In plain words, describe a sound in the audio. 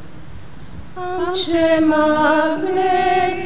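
An elderly man chants through a microphone.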